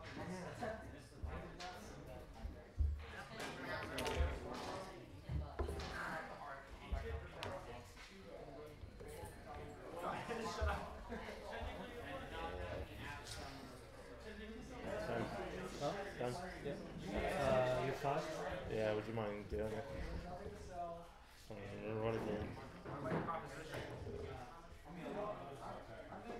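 Small plastic game pieces tap and click on a table.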